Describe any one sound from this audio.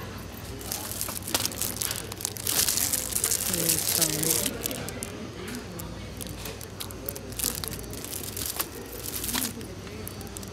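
Plastic wrapping crinkles and rustles in a hand.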